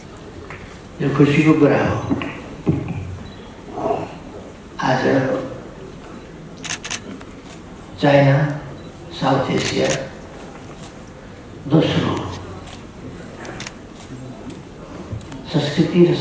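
An elderly man speaks slowly and firmly through a microphone in a large echoing hall.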